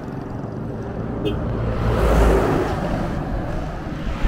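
A truck roars past close by.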